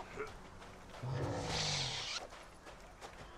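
A large creature grunts and snorts.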